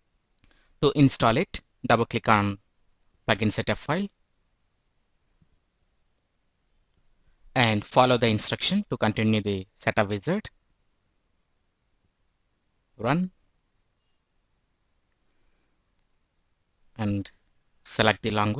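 A young man speaks calmly into a microphone, in short bursts with pauses.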